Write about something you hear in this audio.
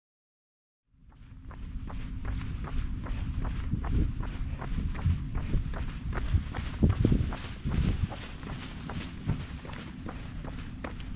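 Running footsteps pound steadily on a paved road.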